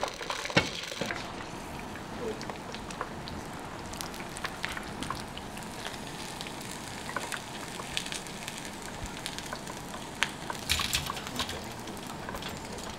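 Oil sizzles in a pot as meat fries.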